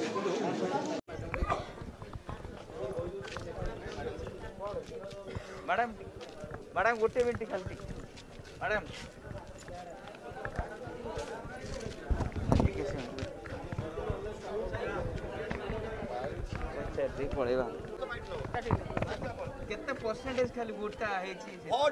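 Men and women chatter outdoors close by.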